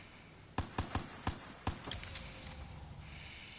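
A gun fires several quick shots.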